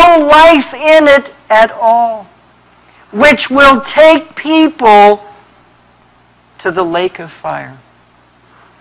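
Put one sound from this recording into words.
A man preaches with emphasis through a microphone, in pauses.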